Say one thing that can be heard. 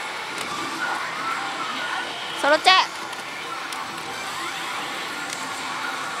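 A slot machine plays bright electronic music and jingles.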